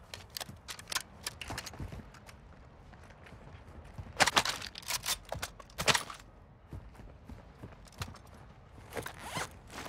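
Footsteps crunch quickly on gravel and concrete.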